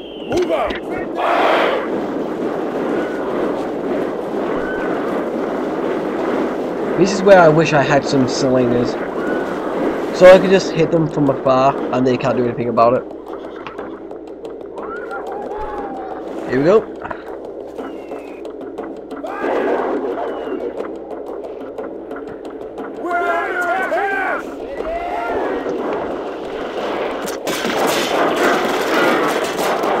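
A large body of soldiers tramps across open ground.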